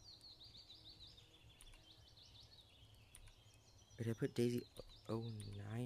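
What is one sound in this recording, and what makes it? A key clicks softly as it is pressed, several times.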